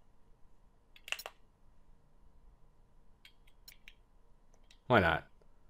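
Short electronic menu clicks and blips sound.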